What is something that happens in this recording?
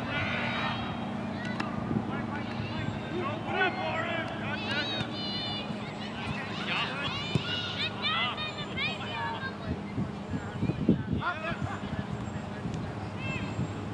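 Young men call out to each other in the distance across an open field.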